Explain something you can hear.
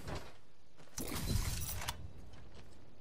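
A game weapon attachment is picked up with a short whooshing rattle.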